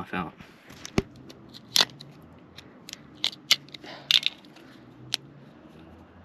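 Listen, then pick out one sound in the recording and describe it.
Metal parts click and clink as hands handle them.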